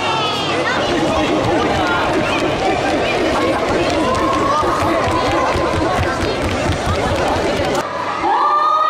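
Many feet stomp on a wooden floor in quick rhythm.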